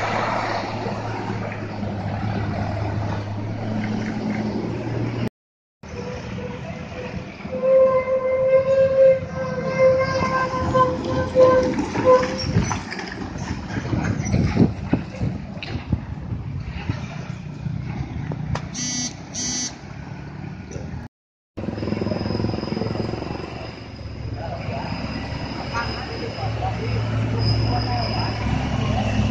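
Heavy truck engines rumble and strain as trucks climb a bend.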